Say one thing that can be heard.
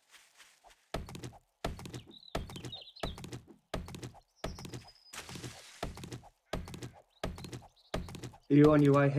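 A stone axe chops into a wooden stump with repeated thuds.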